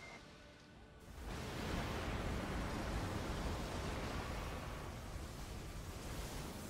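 A booming blast of light crashes down.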